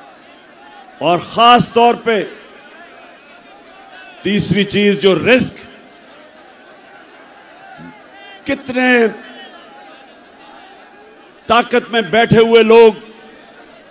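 A man speaks forcefully into a microphone, in short bursts with pauses.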